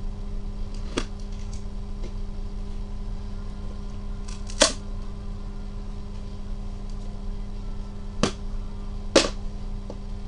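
Gloved hands knock and tap on cardboard boxes.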